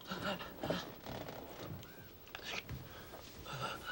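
Bedclothes rustle.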